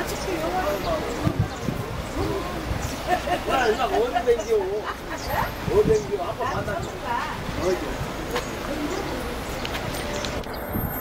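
A woman talks with animation close by, outdoors.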